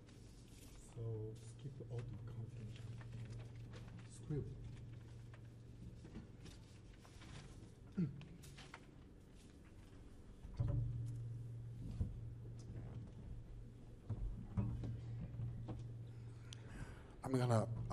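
A saxophone plays short, sliding bursts.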